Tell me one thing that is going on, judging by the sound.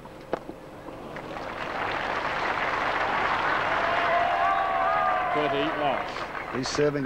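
A large crowd applauds loudly, then dies away.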